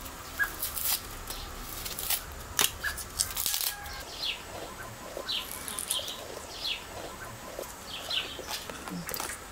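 A small knife scrapes and slices through the peel of a potato.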